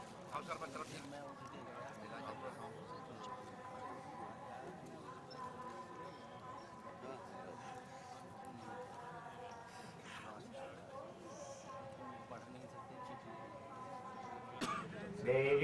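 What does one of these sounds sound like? A crowd of men murmurs and chatters outdoors.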